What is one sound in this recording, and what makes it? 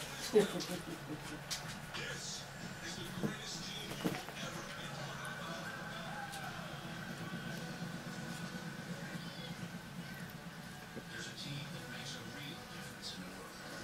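A cat bats at a toy.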